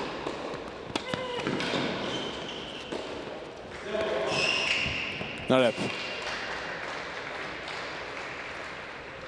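A racket strikes a tennis ball with sharp pops.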